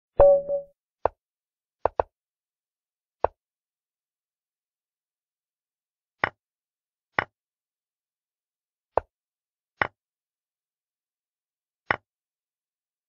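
A chess app plays a short wooden click as each piece is moved.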